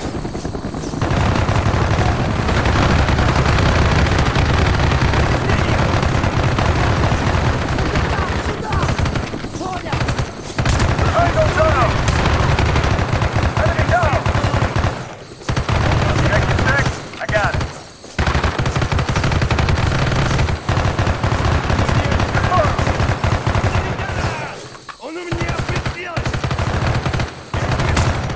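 A rifle fires in rapid, rattling bursts.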